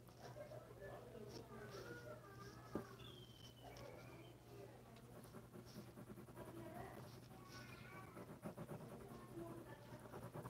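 A pencil scratches and rustles across paper in quick strokes.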